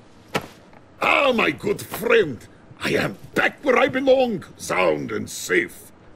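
A middle-aged man shouts with animation, close by.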